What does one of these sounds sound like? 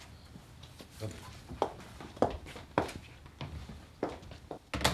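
Footsteps thud on a hard floor as people walk away.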